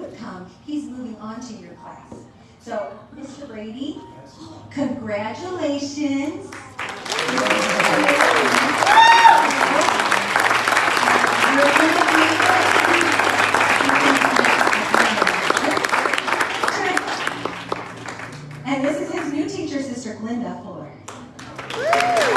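A woman speaks through a microphone in a large room.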